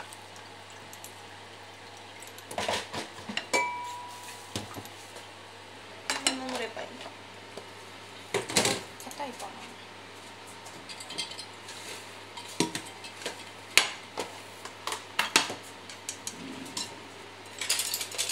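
Chopsticks tap and scrape against a pan.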